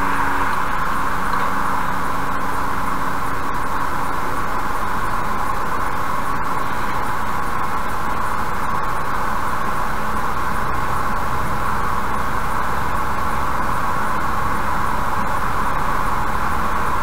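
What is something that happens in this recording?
Tyres roar steadily on a highway as a car drives along.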